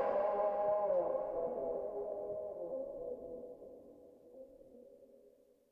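An acoustic guitar strums chords and slowly fades out.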